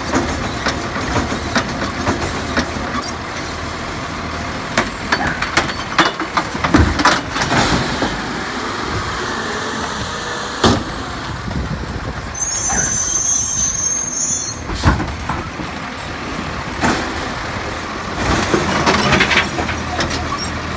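A garbage truck engine idles loudly nearby.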